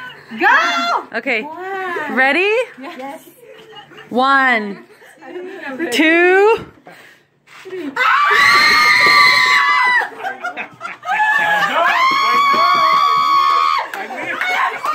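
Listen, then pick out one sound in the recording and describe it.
Young women shriek and squeal with excitement close by.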